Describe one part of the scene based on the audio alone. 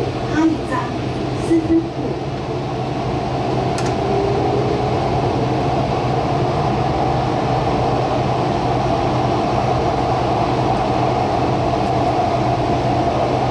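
A train rumbles steadily along its track, its hum slowly growing louder.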